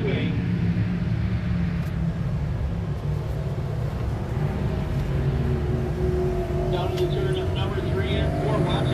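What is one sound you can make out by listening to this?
Race car engines roar around a dirt track outdoors.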